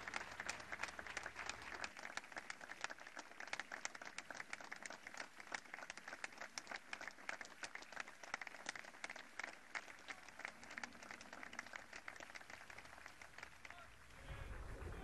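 A large outdoor crowd applauds steadily, then stops.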